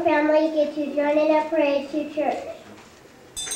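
A young child speaks into a microphone over a loudspeaker in an echoing hall.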